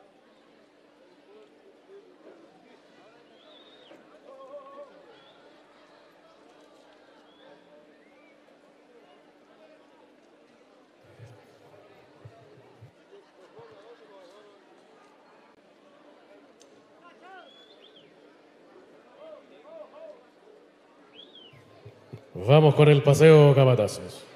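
A crowd murmurs faintly in a large open arena.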